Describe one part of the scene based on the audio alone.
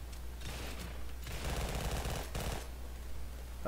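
A gun fires a few shots.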